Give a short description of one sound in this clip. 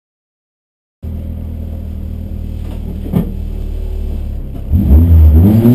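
A car engine idles inside the car.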